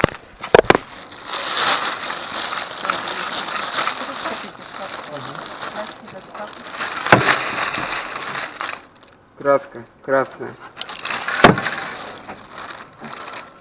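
A plastic bag rustles and crinkles up close.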